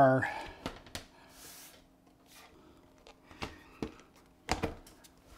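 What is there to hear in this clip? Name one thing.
A metal computer case clunks and knocks as it is handled.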